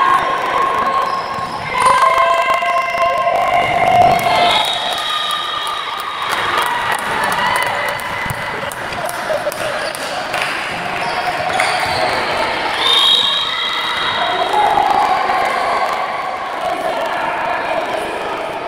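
Young women players shout to each other in a large echoing hall.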